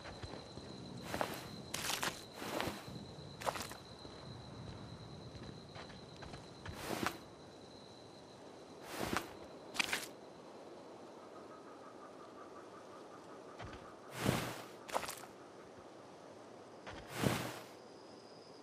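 Short whooshing rustles play again and again as items are picked up.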